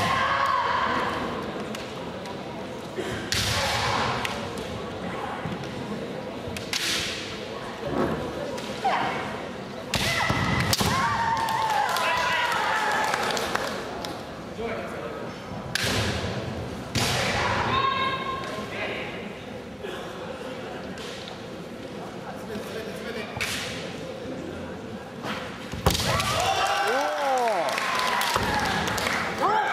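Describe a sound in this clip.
Fencers shout loudly in a large echoing hall.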